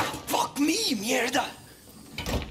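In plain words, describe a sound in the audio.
A young man curses loudly in alarm.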